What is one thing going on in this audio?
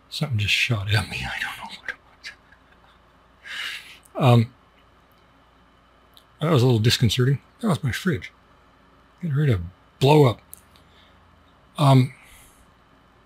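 A middle-aged man speaks calmly and close into a microphone, with pauses.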